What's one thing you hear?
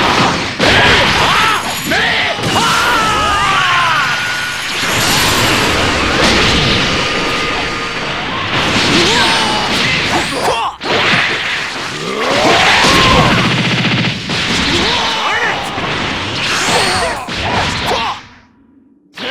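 Energy blasts roar and crackle loudly.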